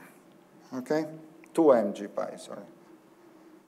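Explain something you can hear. A man speaks calmly in a lecture, heard close by.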